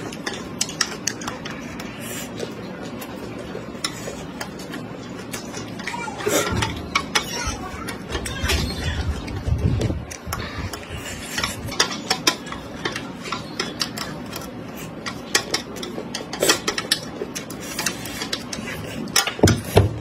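A woman crunches chopped raw chili peppers close to the microphone.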